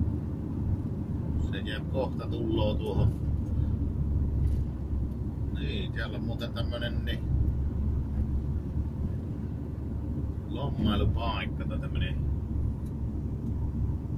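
Tyres rumble on a rough road.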